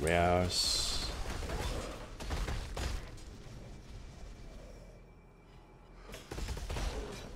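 Magic blasts whoosh and crackle in a video game.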